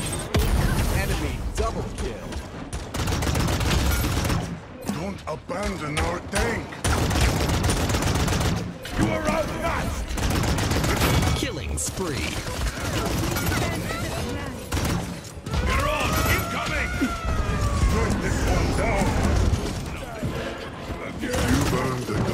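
Energy weapon blasts fire in rapid bursts.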